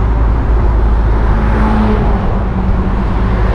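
A truck roars past close by.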